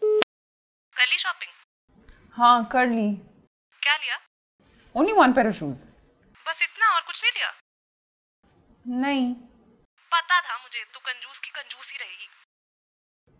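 A young woman talks on the phone with animation, close by.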